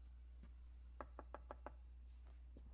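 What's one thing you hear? A man knocks on a wooden door several times.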